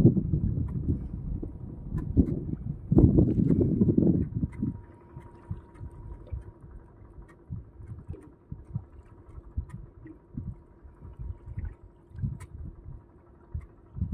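Water laps and splashes gently.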